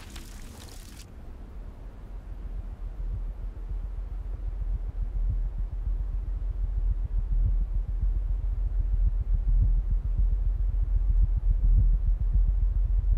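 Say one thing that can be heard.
A horse gallops, hooves thudding on the ground.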